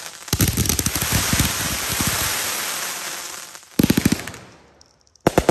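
A firework fountain hisses and crackles loudly.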